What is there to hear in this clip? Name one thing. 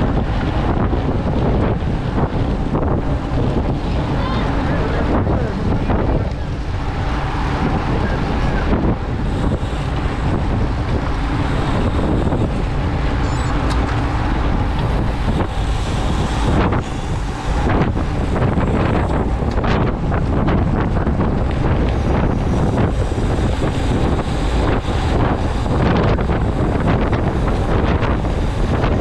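Strong wind rushes loudly past the microphone.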